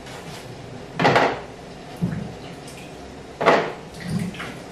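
Tomatoes thump into a plastic bowl.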